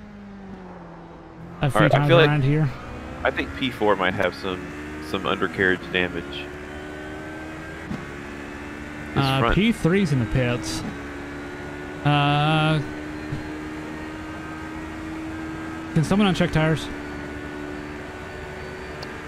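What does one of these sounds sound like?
A racing car engine hums steadily.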